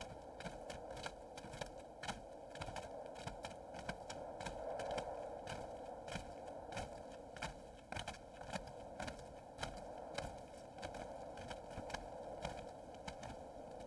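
Several people trudge through soft sand with muffled footsteps.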